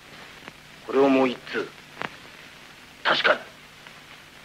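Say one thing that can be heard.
A man speaks in short, tense bursts.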